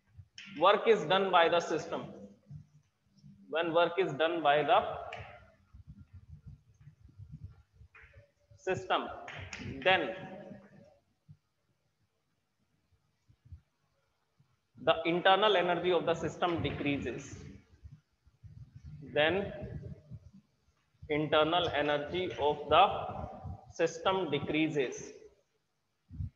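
A young man speaks calmly and clearly, explaining at a steady pace.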